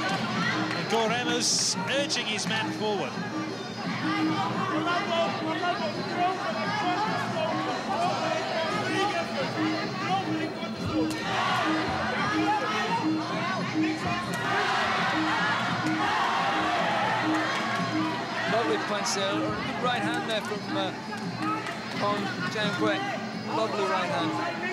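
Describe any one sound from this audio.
A large crowd cheers and shouts throughout.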